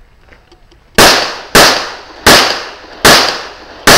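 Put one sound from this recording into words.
A pistol fires several shots in quick succession outdoors.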